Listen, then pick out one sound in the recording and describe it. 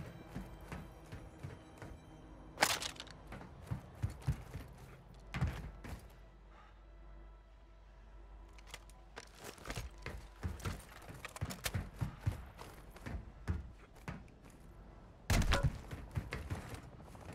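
Footsteps thud and clank on a metal deck.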